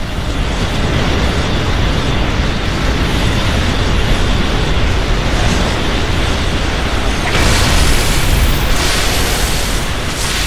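Energy blasts roar and crackle in a fierce, steady rumble.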